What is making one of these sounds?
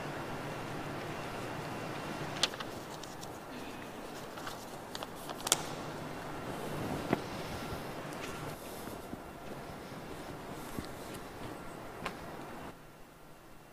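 A seated crowd murmurs and shifts softly in a large echoing hall.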